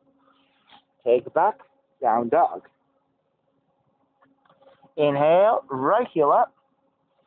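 A man speaks calmly and close by, in short phrases.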